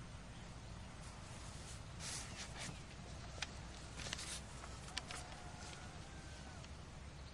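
Paper pages rustle as they are turned.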